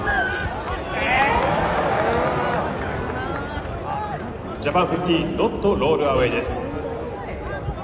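Nearby men and women spectators talk and shout with animation.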